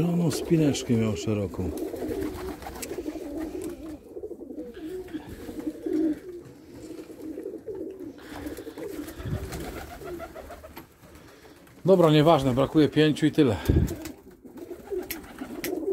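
Pigeons coo softly and steadily.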